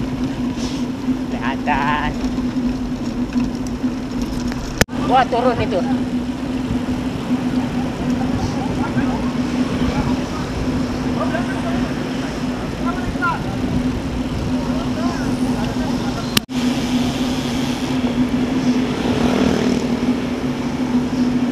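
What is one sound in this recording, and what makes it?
Wind rushes and buffets against the microphone while riding.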